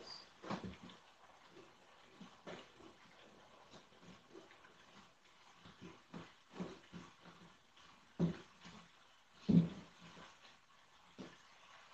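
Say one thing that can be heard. Hands rustle and bump against a sheet of corrugated cardboard.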